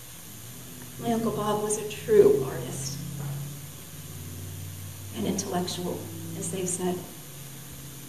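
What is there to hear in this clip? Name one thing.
A young woman speaks calmly into a microphone, heard through a loudspeaker in a reverberant room.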